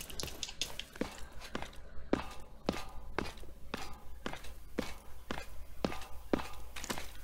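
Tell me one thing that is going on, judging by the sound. Boots clank on the rungs of a metal ladder in a steady rhythm.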